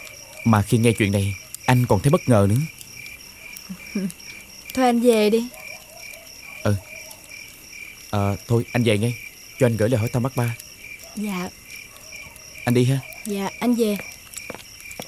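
A young man speaks earnestly up close.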